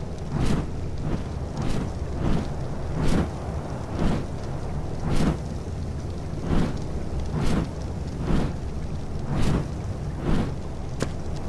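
Large leathery wings flap in a steady rhythm.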